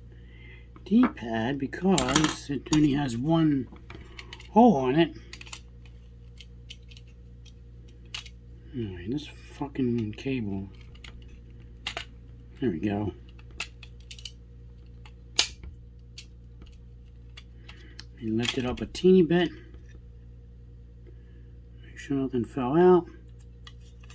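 Small plastic parts click and tap in a young man's hands.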